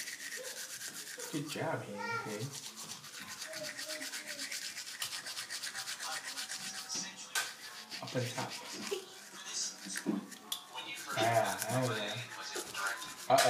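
A toothbrush scrubs rapidly against teeth close by.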